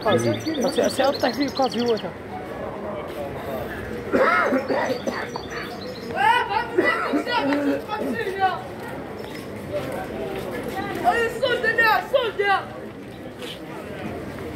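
A crowd of people chatters and calls out nearby on a busy street.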